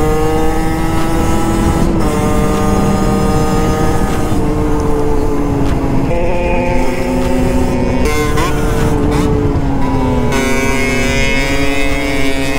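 A motorcycle engine hums close by, shifting gears and changing pitch as it rides.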